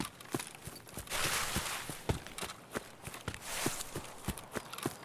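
Tall grass rustles against the legs.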